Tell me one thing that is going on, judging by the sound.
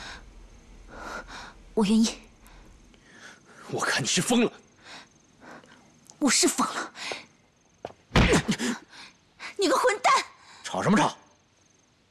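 A young woman speaks in a mocking tone.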